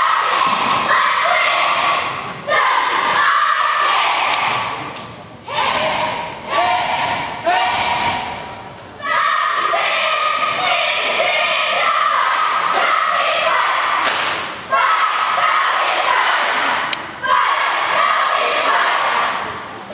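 A squad of teenage girls shouts a cheer chant in unison in a large echoing gym.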